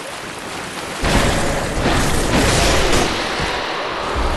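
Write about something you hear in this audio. A heavy blade swings and strikes with a loud crash.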